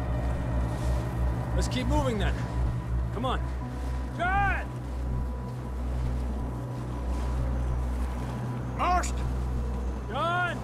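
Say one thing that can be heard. Wind howls steadily through a rocky gap.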